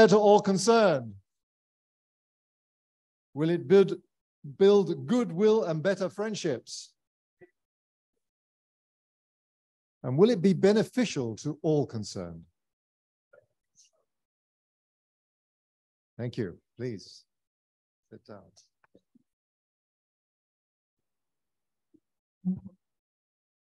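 A man speaks calmly through a microphone on an online call, with pauses.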